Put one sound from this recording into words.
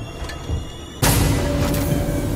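A heavy sliding door slams shut with a loud clunk.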